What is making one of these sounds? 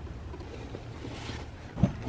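A cloth rustles as it is rubbed.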